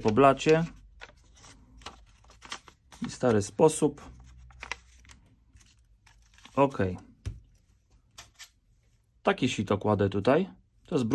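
Stiff paper crinkles and rustles as it is folded by hand.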